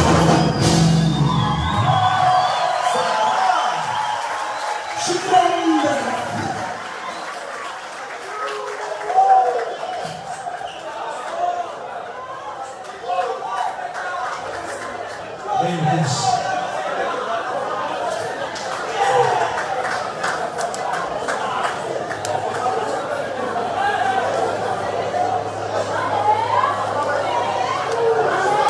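A band plays lively music through loudspeakers in a large echoing hall.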